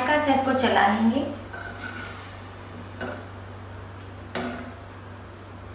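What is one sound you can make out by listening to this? A metal spoon stirs and clinks against a pot of liquid.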